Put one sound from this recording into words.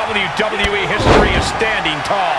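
A body slams hard onto a wrestling ring mat with a heavy thud.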